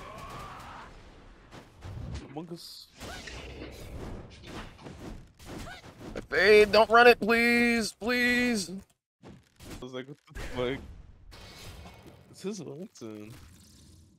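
A young man talks excitedly, close to a microphone.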